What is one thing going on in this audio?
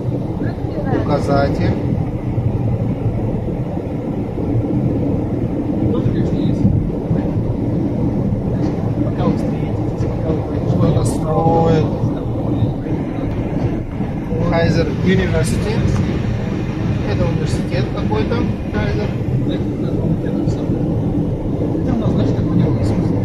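Tyres rumble steadily on a highway from inside a moving car.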